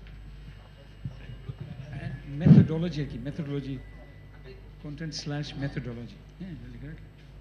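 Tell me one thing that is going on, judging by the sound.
An elderly man speaks into a handheld microphone through loudspeakers.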